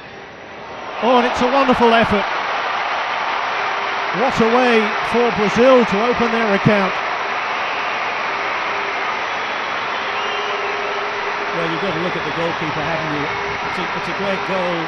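A large stadium crowd suddenly erupts into a loud roar and keeps cheering.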